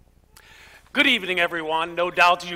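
A man speaks clearly and steadily, close to a microphone.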